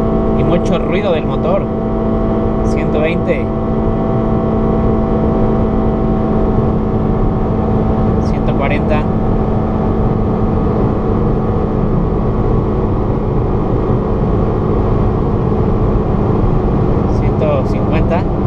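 A car engine hums steadily while driving at speed.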